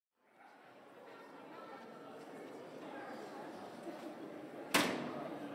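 Distant voices murmur in a large echoing hall.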